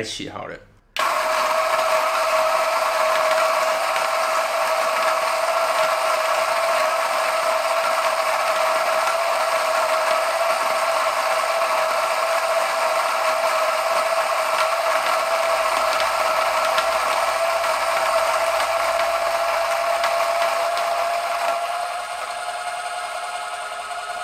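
A coffee grinder whirs steadily with a high hum.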